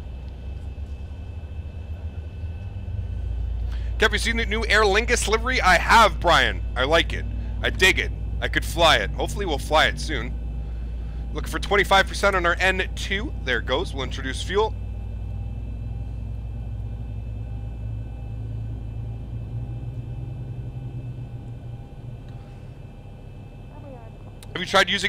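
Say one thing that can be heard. A jet engine hums low and steadily.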